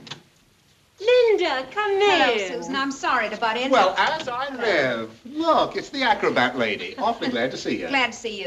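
A woman greets someone warmly and with animation, close by.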